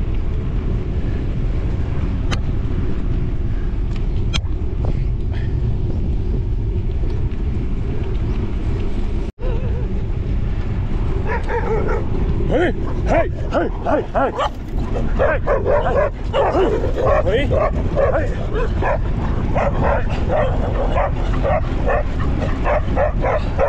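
Wind buffets loudly and steadily in a low rumble while moving outdoors.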